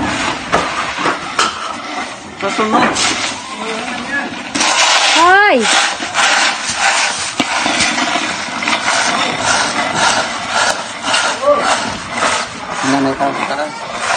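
A man scoops dry beans by hand, rustling them.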